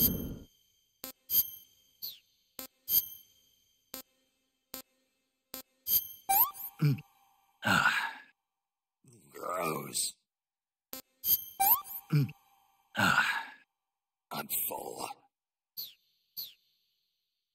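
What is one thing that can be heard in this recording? Short electronic beeps sound as a menu is scrolled.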